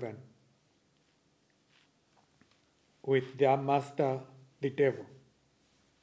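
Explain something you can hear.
An older man reads aloud calmly into a microphone.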